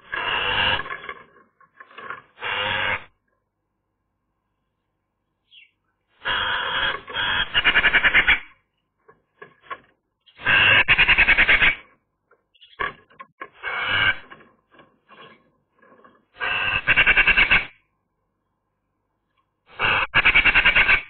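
A Eurasian magpie chatters in harsh, rattling bursts.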